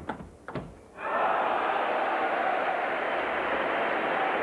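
An indoor crowd applauds.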